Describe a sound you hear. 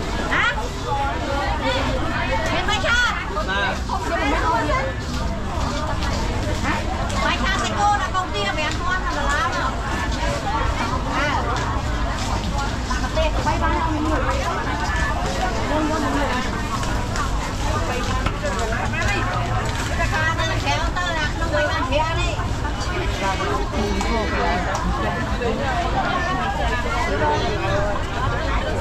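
A busy crowd of voices chatters all around, outdoors.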